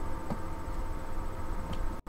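Bubbles gurgle underwater.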